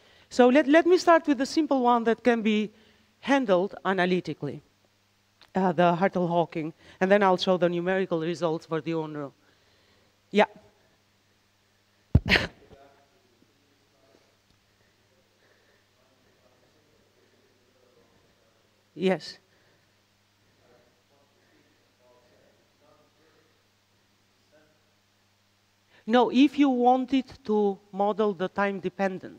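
A woman lectures through a microphone, pausing now and then.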